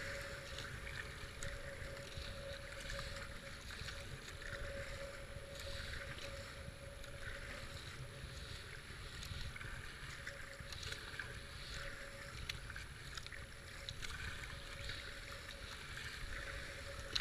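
A kayak paddle splashes rhythmically in the water.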